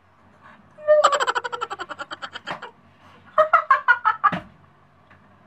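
A young man laughs in short bursts close by.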